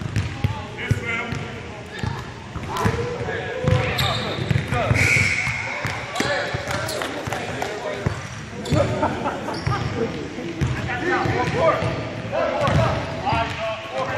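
Men talk and call out across a large echoing gym.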